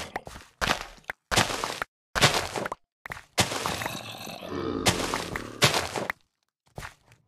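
Plants crunch in quick bursts as they are harvested.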